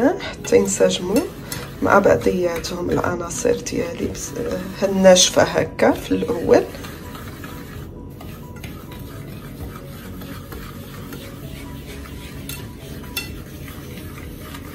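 A whisk swishes and scrapes through thick batter in a bowl.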